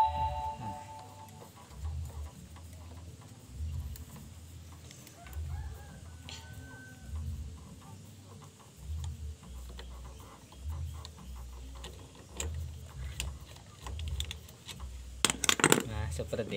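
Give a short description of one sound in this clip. A hand tool clicks and scrapes against metal parts close by.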